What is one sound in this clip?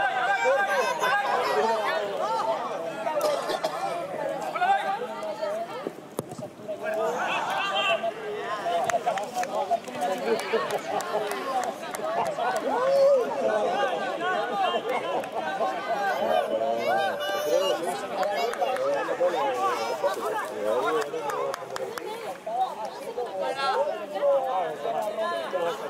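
A crowd of men talk and shout nearby, outdoors.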